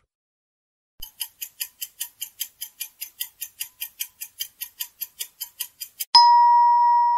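A countdown timer ticks quickly and steadily.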